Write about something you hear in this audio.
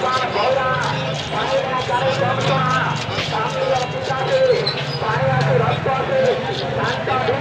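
A knife scrapes scales off a fish with quick rasping strokes.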